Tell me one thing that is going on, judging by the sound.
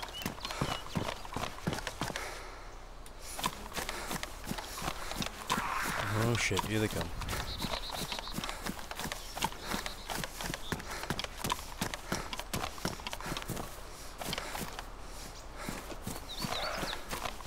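Footsteps swish quickly through tall grass.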